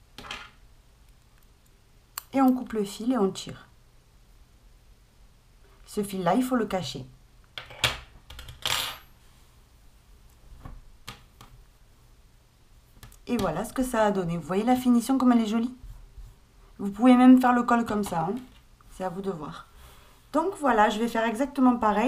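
Soft knitted fabric rustles as hands handle and smooth it.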